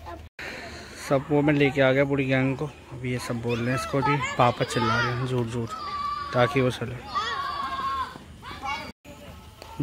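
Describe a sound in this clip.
Children and young men shout and call out across an open field.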